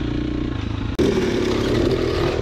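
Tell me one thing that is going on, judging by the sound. Another dirt bike engine revs loudly close by.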